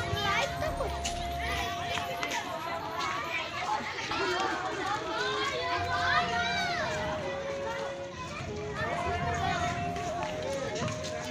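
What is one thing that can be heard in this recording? Children shout and chatter nearby outdoors.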